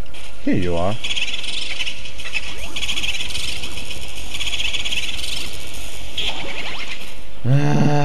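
A vacuum whirs steadily, sucking with a hissing rush.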